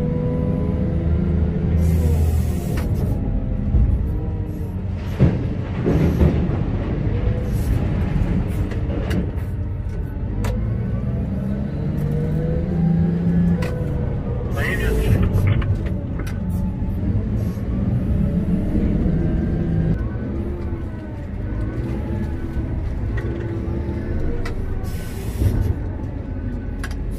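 Hydraulics whine, rising and falling in pitch.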